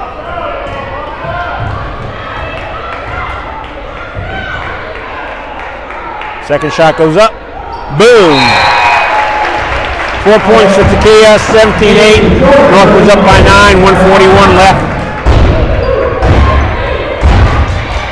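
A crowd cheers and shouts loudly in a large echoing gym.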